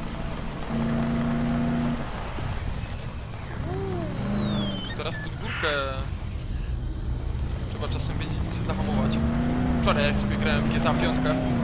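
A car engine rumbles while driving over rough ground.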